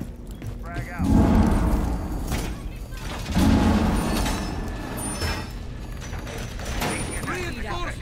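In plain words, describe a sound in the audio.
Heavy metal panels clank and rattle loudly as they are set in place.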